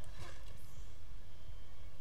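A weapon sprays with a hissing burst.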